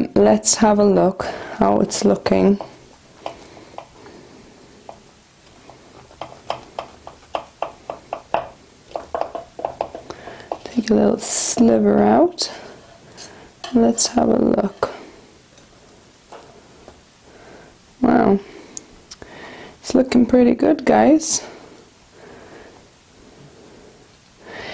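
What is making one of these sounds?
A fork scrapes through a crumbly mixture in a pan.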